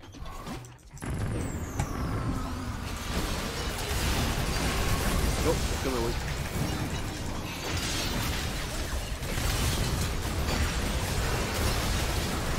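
Game battle effects crackle and boom.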